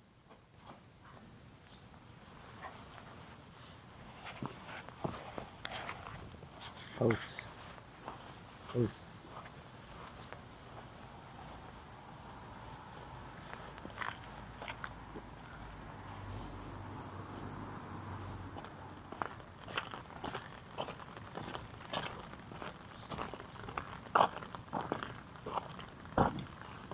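Footsteps crunch on gravel and dry leaves.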